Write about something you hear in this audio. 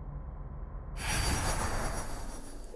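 Magic energy crackles and hums around a game figure.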